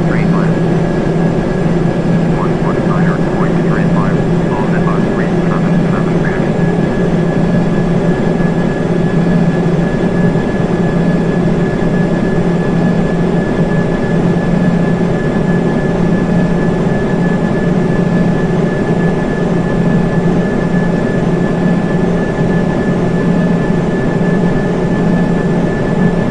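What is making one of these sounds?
Jet engines roar and hum steadily.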